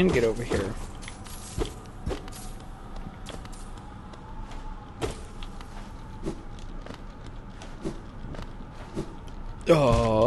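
Light footsteps tap softly in quick succession.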